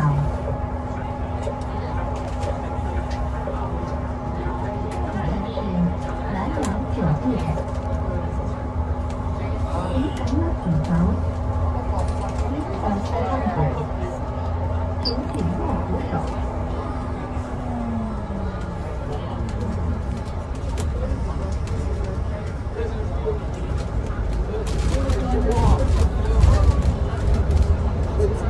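A bus engine drones with a steady low hum that drops in pitch.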